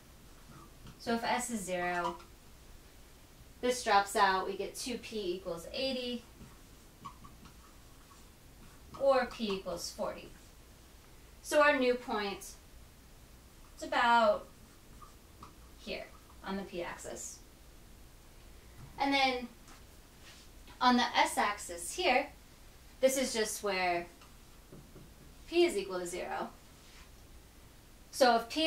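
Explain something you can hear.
A young woman explains calmly into a close microphone, in short phrases with pauses.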